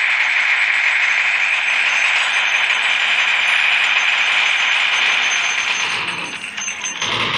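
Rapid gunfire rattles without a break.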